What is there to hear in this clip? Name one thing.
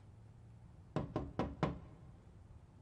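A woman knocks on a glass window pane.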